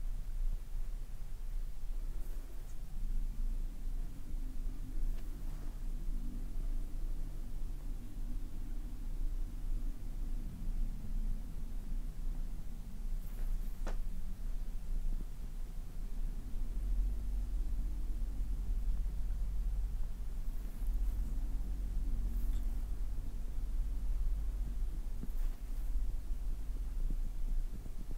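A wooden stick softly rubs and presses against skin.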